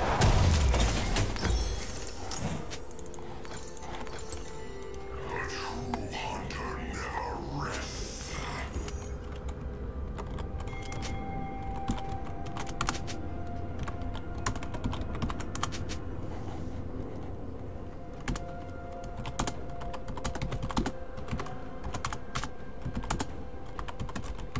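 A game's sound effects click and chime.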